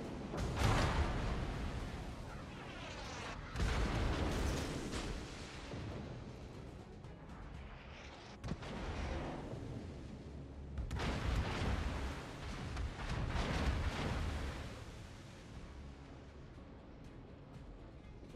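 Waves wash against a moving ship's hull.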